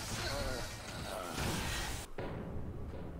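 Rapid gunfire and explosions roar loudly, then cut off abruptly.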